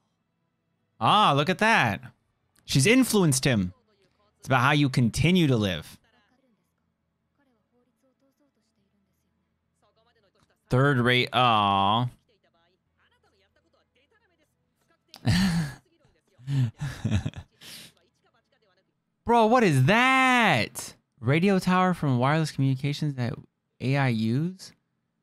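A young man speaks animatedly into a close microphone, in bursts with pauses.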